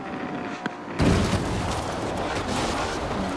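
A car smashes through bushes with rustling and crackling.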